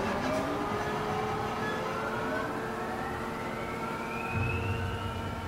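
A cable car gondola glides along a humming cable.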